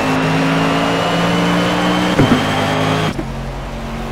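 A racing car engine roars loudly at high revs.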